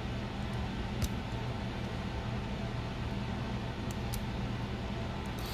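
Small plastic parts click softly as fingers handle them.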